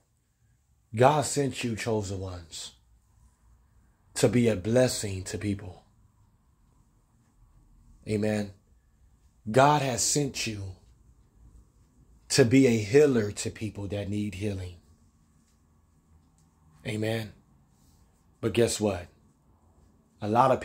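A young man sings in short, strong phrases close by, with pauses between them.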